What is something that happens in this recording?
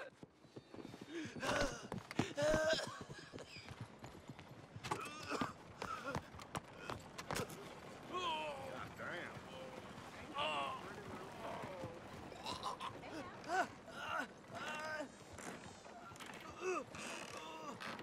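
A wounded man groans and gasps in pain close by.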